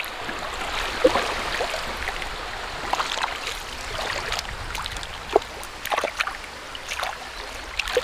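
Water splashes as a hand moves through it.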